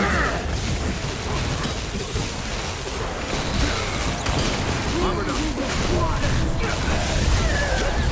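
Game combat effects whoosh and crackle with bursts of magic.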